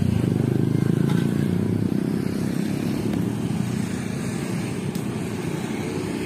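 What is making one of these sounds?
Motorbike engines rumble past close by.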